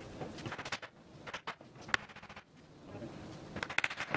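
A mallet knocks on wood.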